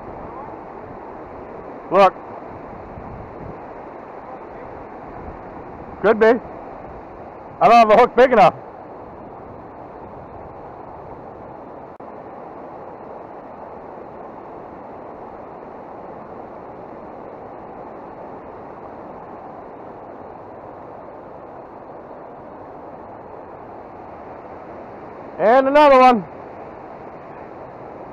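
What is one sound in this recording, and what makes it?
A river rushes steadily over rocks nearby.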